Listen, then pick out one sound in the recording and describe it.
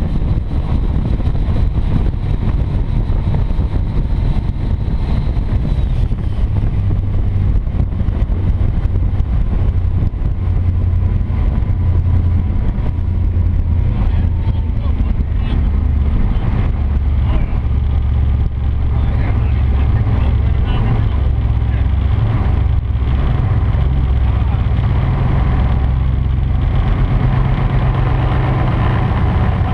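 Water rushes and churns in a boat's wake.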